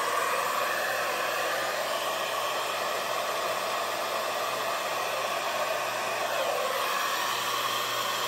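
A heat gun blows with a steady, rushing hum.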